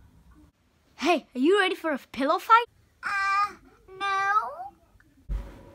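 A young child speaks excitedly close by.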